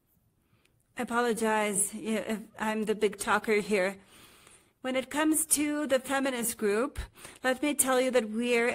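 A middle-aged woman speaks with animation, heard through an online call.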